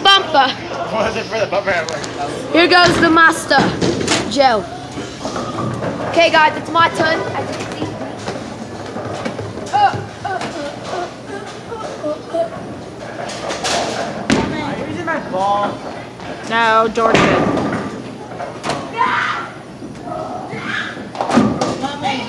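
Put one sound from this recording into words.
A young man talks and laughs close by in an echoing hall.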